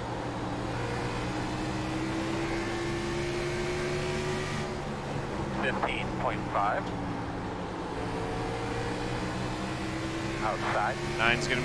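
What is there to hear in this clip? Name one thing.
A race car engine drones steadily, rising and falling in pitch.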